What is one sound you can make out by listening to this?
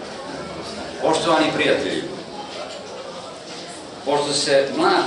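An elderly man speaks calmly into a microphone, in short bursts.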